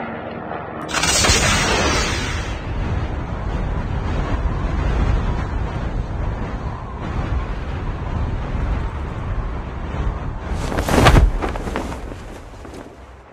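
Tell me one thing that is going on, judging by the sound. Wind rushes loudly past during a fast fall through the air.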